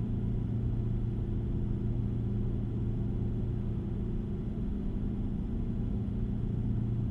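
A truck engine rumbles steadily at a low pitch.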